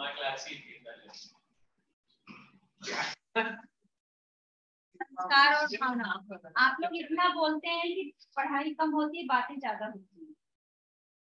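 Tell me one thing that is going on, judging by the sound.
A woman speaks calmly, as if teaching, close to a microphone.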